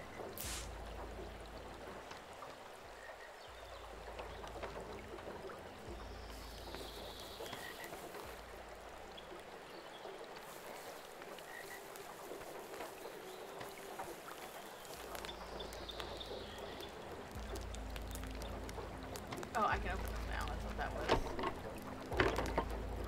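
A river rushes and splashes steadily nearby.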